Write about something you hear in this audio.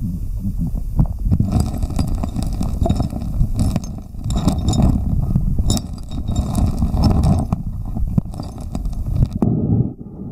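Stones click and knock together under water.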